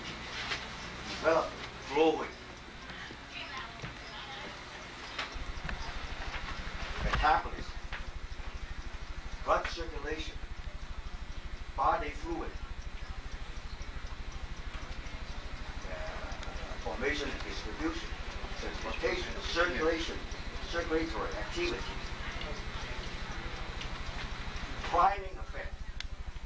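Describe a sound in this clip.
A man speaks loudly in short bursts, with pauses between them.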